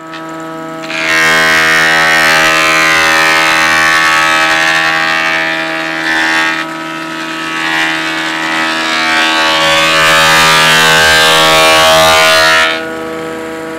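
A wood planer shaves a board with a loud rasping whine.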